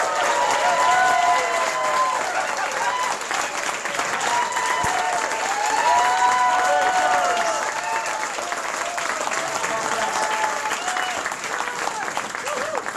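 A crowd sings along loudly in a small lively room.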